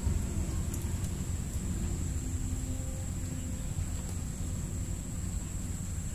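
A fishing rod swishes as a line is cast over water.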